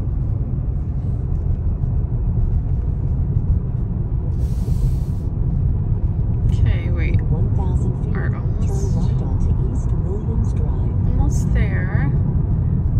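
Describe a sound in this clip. A car's tyres rumble steadily on the road while driving.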